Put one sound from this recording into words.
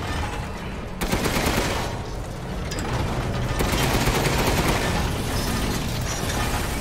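Rapid gunshots ring out and echo.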